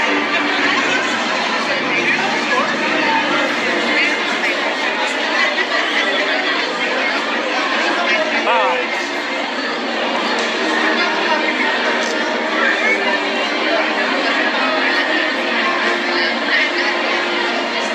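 A crowd of people chatter in a busy indoor hall.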